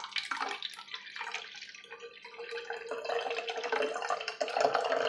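Water pours from a plastic bottle into a metal can.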